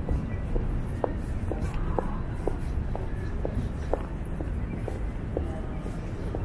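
Footsteps click on pavement as a man walks close by.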